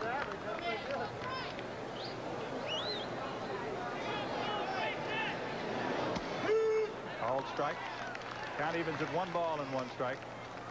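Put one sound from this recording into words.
A crowd murmurs in a large outdoor stadium.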